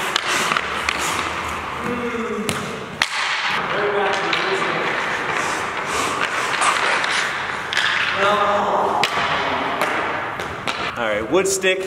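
Ice skates scrape and carve across the ice.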